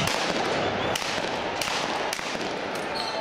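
A gun fires sharp, loud shots.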